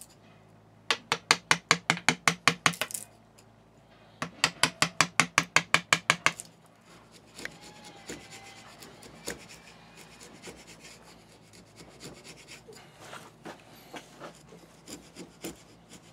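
A metal tool scrapes and taps against metal in quick, rhythmic strokes.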